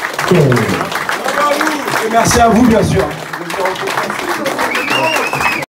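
A live band plays lively blues.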